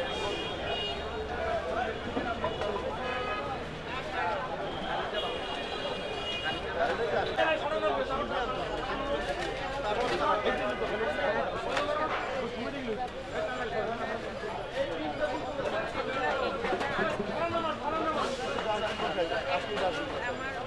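A crowd of men talk over one another outdoors.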